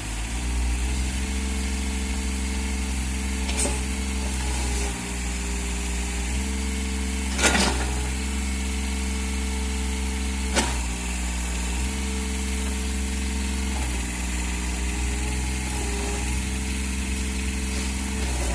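A small excavator's diesel engine runs steadily and changes pitch as the arm works.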